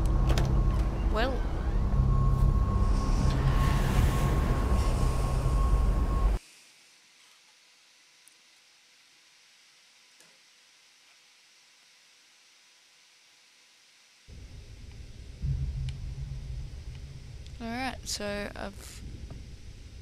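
A young woman talks into a microphone with animation.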